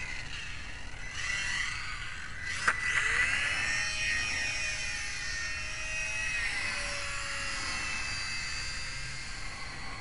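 A small model airplane motor whines overhead, rising and falling in pitch as it passes.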